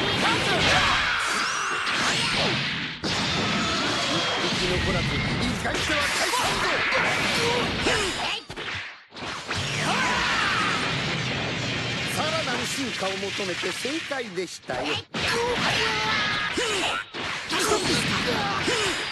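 Fighting game punches and blasts crash and boom rapidly.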